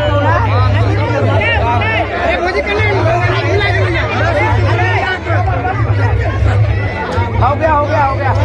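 A crowd of guests chatters nearby.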